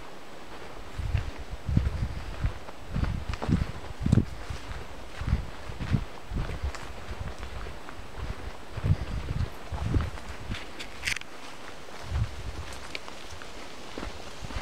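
Footsteps rustle through undergrowth on a forest floor.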